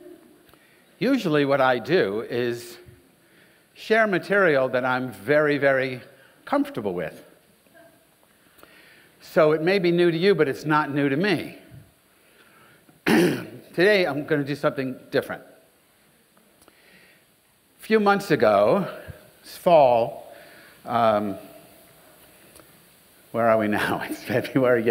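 An older man speaks with animation through a microphone, pausing between phrases.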